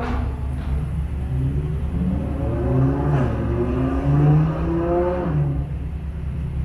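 A sports car engine revs and roars as the car pulls away.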